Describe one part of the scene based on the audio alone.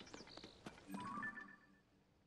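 A soft electronic chime sounds.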